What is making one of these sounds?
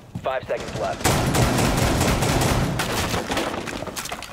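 Rapid gunfire bursts out loudly and close.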